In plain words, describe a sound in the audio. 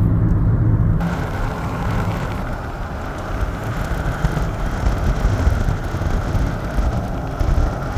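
Wind rushes loudly through an open car window.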